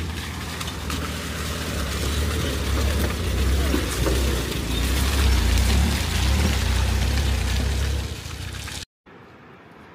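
A van engine rumbles close by as it drives over a rough dirt track.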